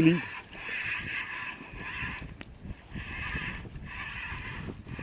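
A fishing reel's drag buzzes in repeated bursts.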